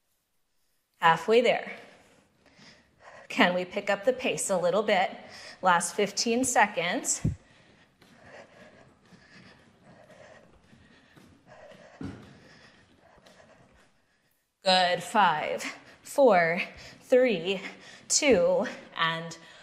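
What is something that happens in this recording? A woman speaks calmly, giving instructions close to a microphone.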